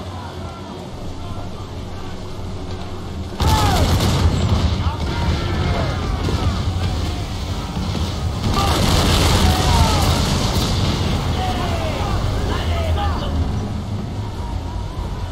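Wind and sea waves roar steadily around a sailing ship.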